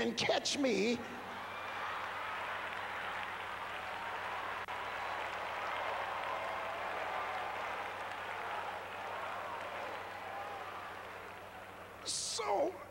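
A large crowd laughs.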